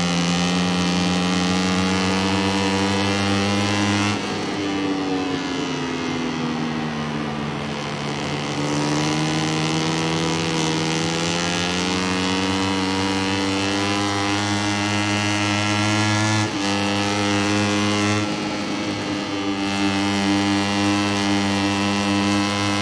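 A motorcycle engine roars loudly, its pitch dropping when it slows for corners and climbing as it speeds up again.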